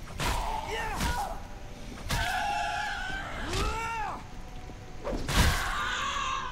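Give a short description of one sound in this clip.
A blade strikes flesh with heavy, wet thuds.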